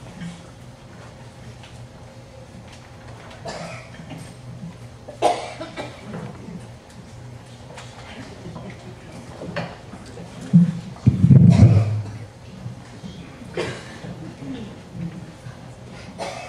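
A crowd of older men and women murmur and chat quietly in a large room.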